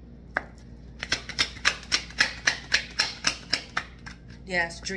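Playing cards are shuffled with quick, rhythmic flicking snaps.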